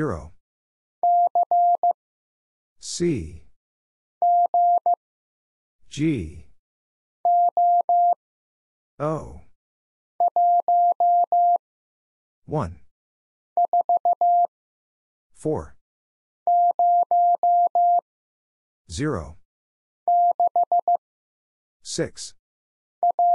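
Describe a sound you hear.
A Morse code key sends short bursts of steady, high beeps.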